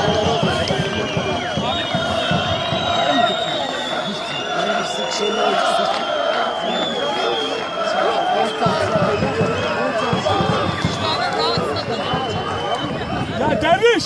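A crowd in a stadium chants and whistles loudly throughout.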